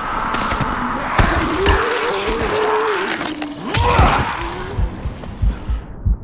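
A blade hits a body with heavy thuds.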